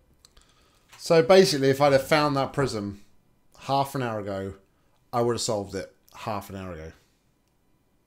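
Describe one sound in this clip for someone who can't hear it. A man talks with animation into a close microphone.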